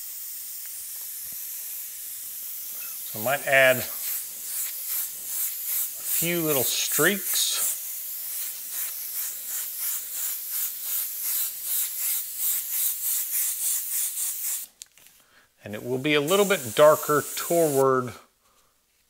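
An airbrush sprays with a soft, pulsing hiss.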